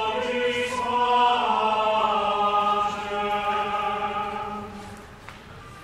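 A man sings a slow chant that echoes through a large hall.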